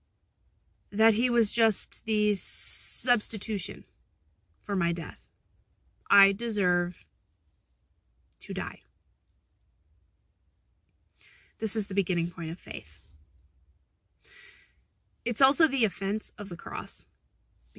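A young woman speaks calmly and closely into a microphone, in short bursts with pauses.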